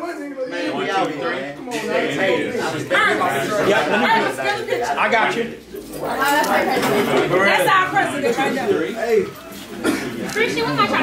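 Several young men talk and laugh loudly and close by.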